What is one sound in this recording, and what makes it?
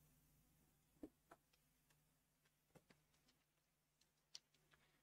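Paper rustles and taps near a microphone.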